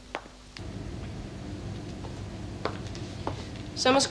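Footsteps approach across a room.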